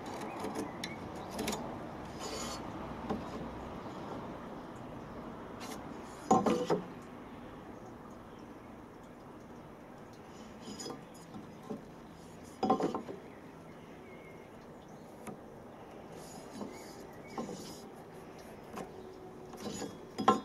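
A pencil scratches along wood.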